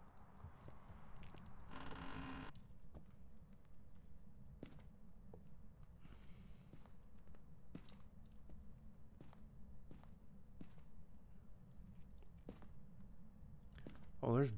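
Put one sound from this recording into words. Footsteps thud slowly and evenly on a wooden floor.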